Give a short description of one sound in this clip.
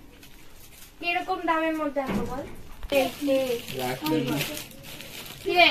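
Children talk and call out nearby.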